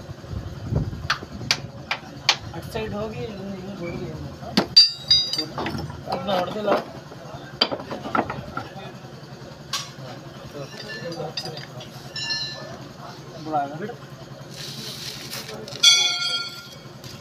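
Metal tools clink and knock against metal.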